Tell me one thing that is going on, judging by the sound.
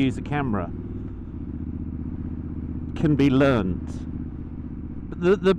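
A motorcycle engine hums steadily as the bike rides along.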